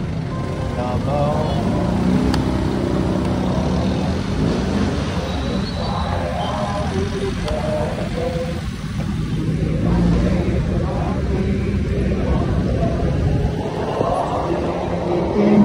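Motorcycle engines hum and drone nearby.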